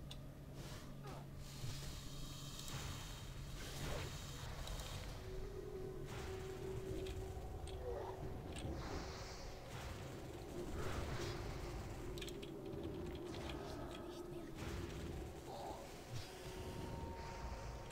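Magic spells whoosh and crackle during a game battle.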